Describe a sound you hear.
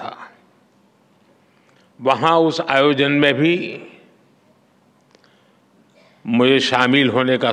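An elderly man speaks slowly and deliberately into a microphone, with pauses.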